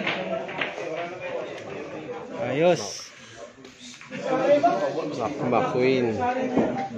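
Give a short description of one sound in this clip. Several men talk loudly and with animation nearby.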